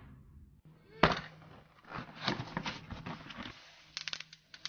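A cardboard box is opened with a scraping rustle.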